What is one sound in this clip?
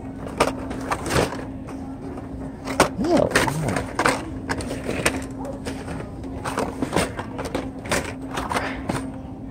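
Plastic toy packages rustle and clatter on metal hooks as a hand sorts through them.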